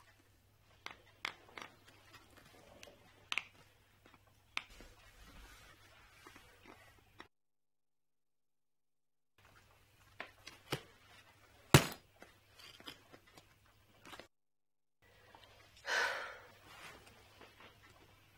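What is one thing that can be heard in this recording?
A woman speaks quietly and tensely, close by.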